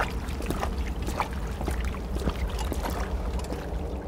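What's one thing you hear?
Footsteps crunch on soft ground.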